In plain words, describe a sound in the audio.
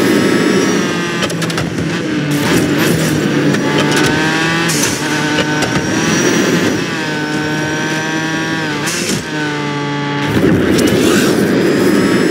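A racing car engine whines at high speed, its pitch rising and dipping as it revs.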